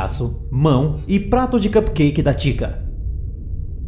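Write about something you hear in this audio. A young man speaks with animation, close to the microphone.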